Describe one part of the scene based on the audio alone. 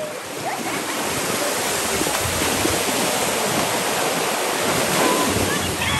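Waves wash against rocks outdoors in wind.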